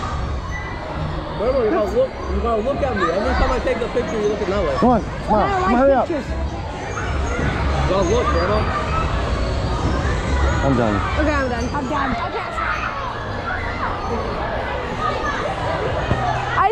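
A crowd chatters and shouts in a large echoing hall.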